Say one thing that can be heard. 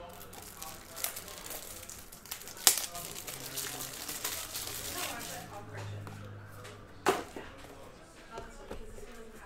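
Card packs rustle and tap as they are handled.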